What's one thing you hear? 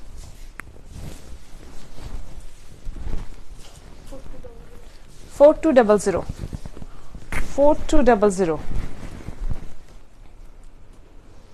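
Silk fabric rustles as it is unfolded and shaken.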